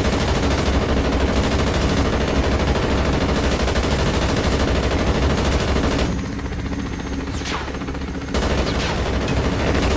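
A heavy machine gun fires rapid bursts from above.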